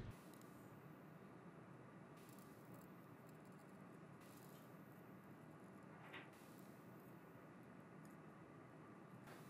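A pipe cutter's wheel scrapes softly around a metal tube.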